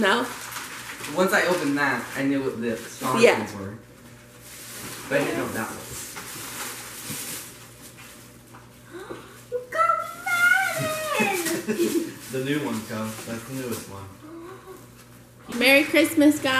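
A small family group chats and laughs nearby.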